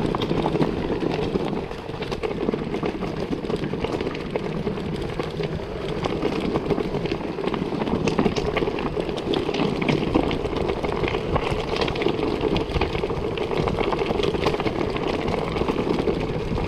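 Bicycle tyres roll and crunch over a stony dirt trail.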